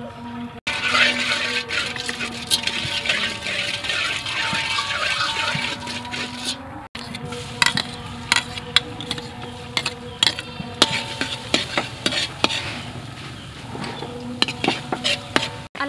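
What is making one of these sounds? Hot oil sizzles and crackles in a wok.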